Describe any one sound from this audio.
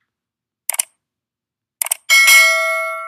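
A mouse button clicks several times.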